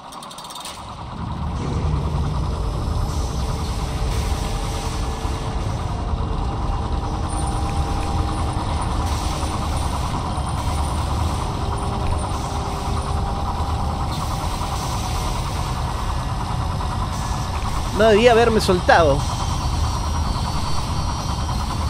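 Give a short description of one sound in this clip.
A large spinning saw blade whirs and rumbles steadily.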